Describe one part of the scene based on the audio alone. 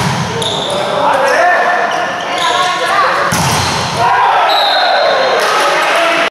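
Young men shout on the court.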